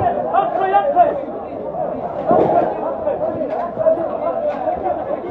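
A crowd of men shouts and argues loudly close by.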